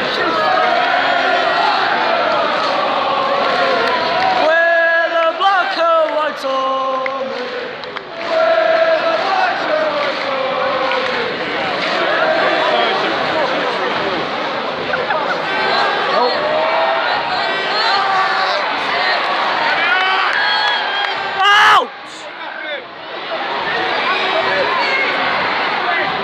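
A large stadium crowd sings and chants loudly all around.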